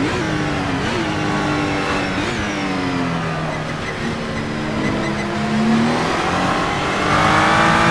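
A race car engine roars and revs up and down.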